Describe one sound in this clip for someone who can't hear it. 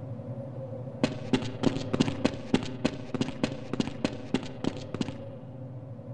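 Footsteps run quickly across a hard floor nearby.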